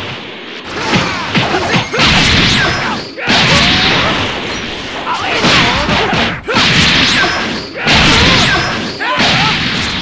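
Blows land with sharp impacts.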